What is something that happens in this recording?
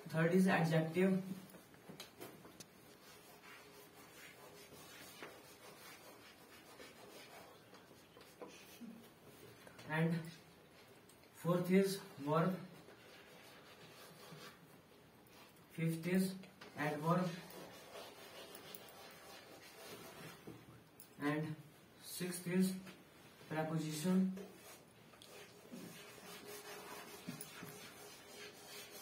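Chalk scratches and taps on a chalkboard.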